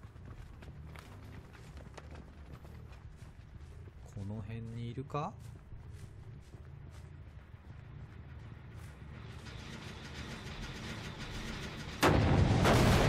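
Heavy footsteps crunch through dry grass.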